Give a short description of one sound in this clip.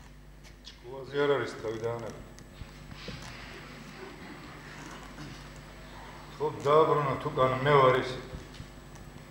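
A man speaks with feeling, slightly echoing.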